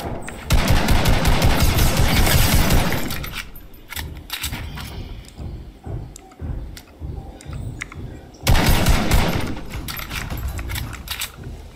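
An automatic rifle fires rapid bursts in a video game.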